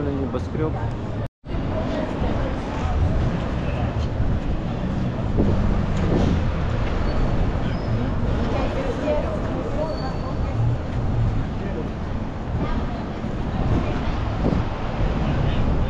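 Traffic hums steadily along a busy city street outdoors.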